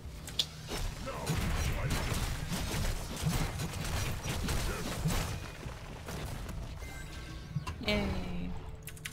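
Magical blasts and impacts crackle and thud during a fast fight.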